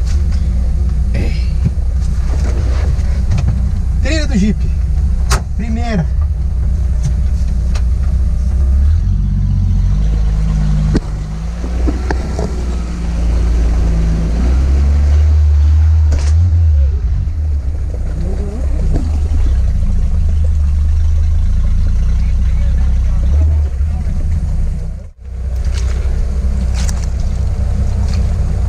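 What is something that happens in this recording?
A vehicle engine rumbles loudly and steadily.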